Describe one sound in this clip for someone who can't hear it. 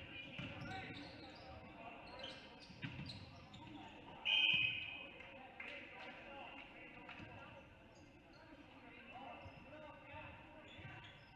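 A small crowd murmurs in an echoing gym.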